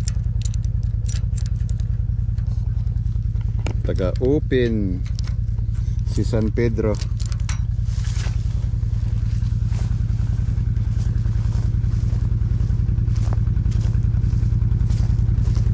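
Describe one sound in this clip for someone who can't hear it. A vehicle engine idles with a steady low rumble nearby.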